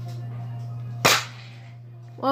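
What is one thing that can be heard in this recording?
A toy foam-dart blaster fires with a sharp snap.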